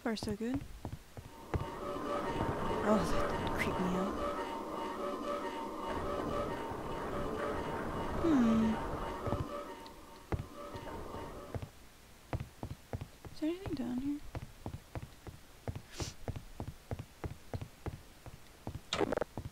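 Footsteps clank steadily.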